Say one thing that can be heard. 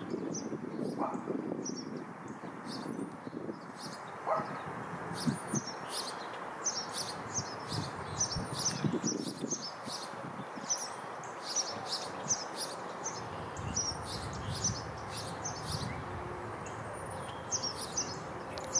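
A small bird chirps in quick, high notes nearby.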